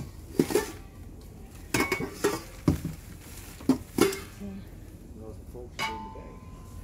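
Metal pots and dishes clatter and clank against each other.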